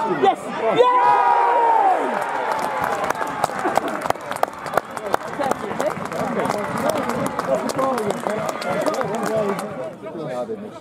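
A crowd cheers and claps outdoors.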